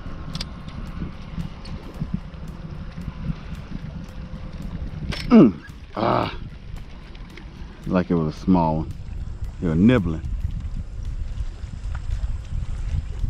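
Small waves lap against a boat's hull.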